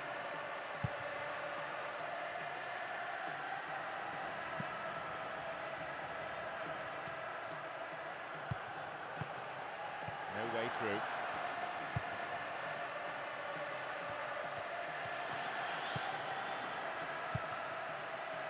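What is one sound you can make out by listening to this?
A football thumps when kicked.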